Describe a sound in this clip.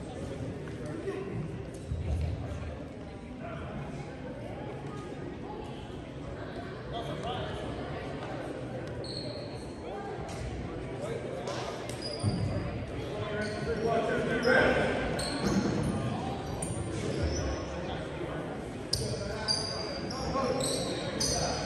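A crowd chatters in a large echoing gym.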